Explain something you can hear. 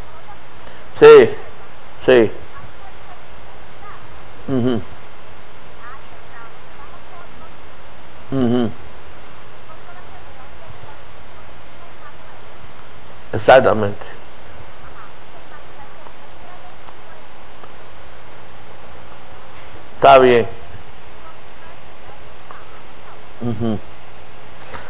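An elderly man speaks briefly into a phone in short bursts with long pauses.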